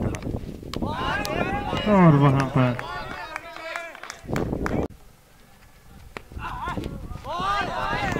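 A cricket bat knocks a ball with a sharp crack.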